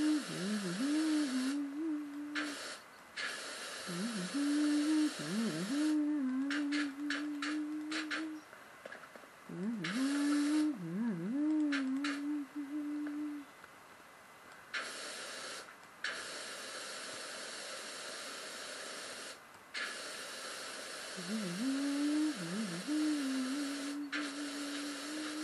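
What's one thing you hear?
A motor hums steadily, dipping in pitch now and then.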